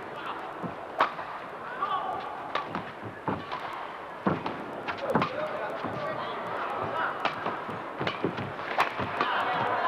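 Shuttlecock hits crack sharply off rackets in a large echoing hall.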